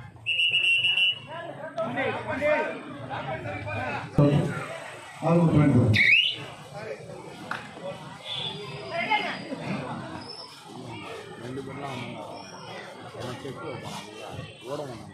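A large outdoor crowd of men chatters and shouts throughout.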